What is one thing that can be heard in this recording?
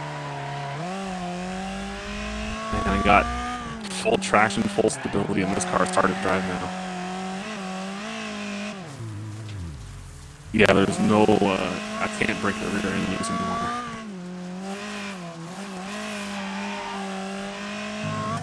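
A race car engine roars and revs steadily.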